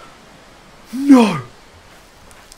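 A young man cries out in fright through a close microphone.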